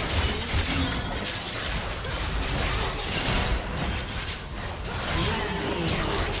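Game spell effects crackle and burst in a battle.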